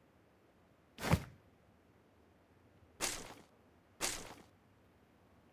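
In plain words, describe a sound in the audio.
Gear is picked up with short rustling thuds.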